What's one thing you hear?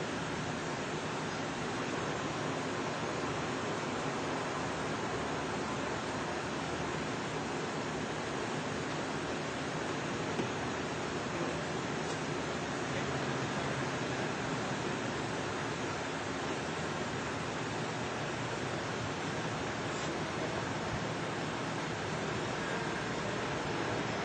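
A car engine hums as a car drives slowly.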